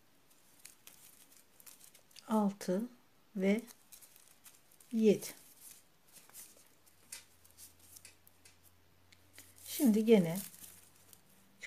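Yarn rustles softly as a crochet hook pulls it through loops.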